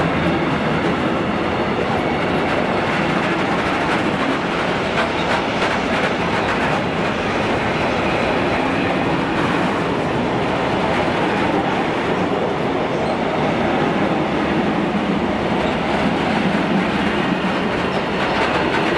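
A freight train rumbles past close by, its wheels clattering and squealing on the rails.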